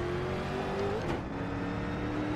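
A race car engine drops in pitch for a moment as the gear shifts.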